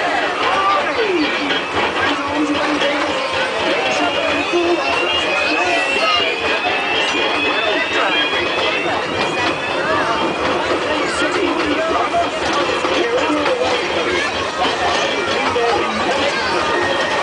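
A crowd of adults and children chatters nearby.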